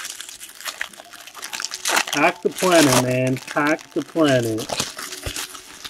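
Card pack wrappers crinkle and rustle close by.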